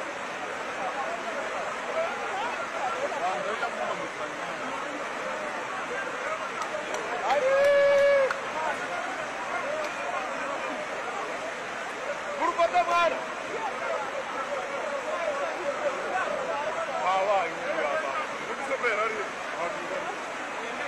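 A crowd of onlookers shouts and chatters outdoors.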